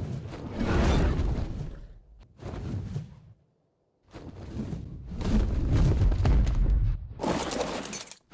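A large winged creature's wings flap with deep whooshing gusts.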